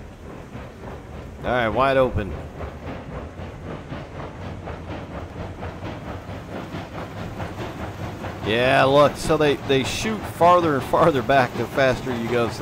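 A steam locomotive chuffs steadily as it rolls along.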